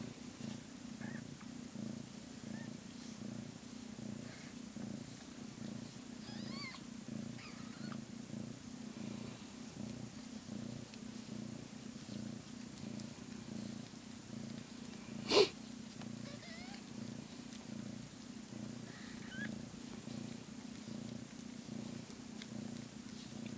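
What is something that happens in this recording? A gloved hand rubs softly through a cat's fur.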